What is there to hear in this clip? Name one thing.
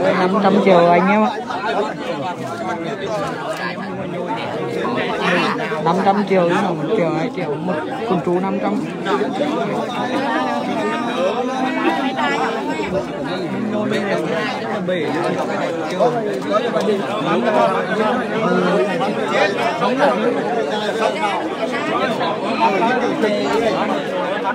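A crowd of men talk and call out close by, outdoors.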